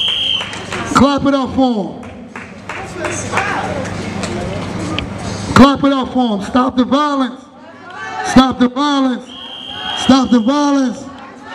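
A man speaks loudly and with emotion to a gathered crowd outdoors.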